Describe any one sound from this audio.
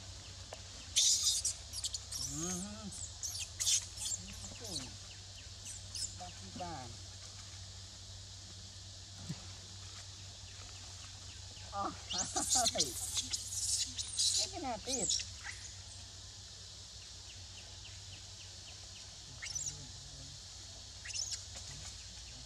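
Monkeys squeak and chirp close by.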